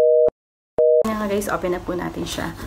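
A woman speaks with animation, close to the microphone.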